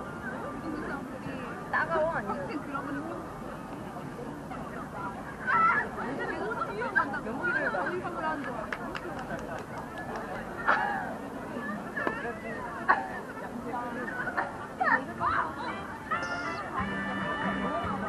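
A crowd of people chatters outdoors in the open.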